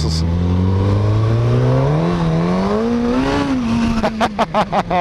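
Wind rushes past a moving motorcycle.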